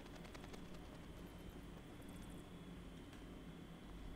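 A magic wand casts a spell with a shimmering whoosh.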